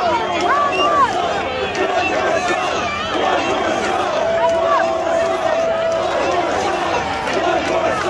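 A large crowd chatters and talks loudly all around.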